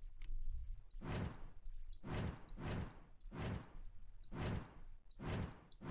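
Game menu pages switch with repeated soft whooshing sounds.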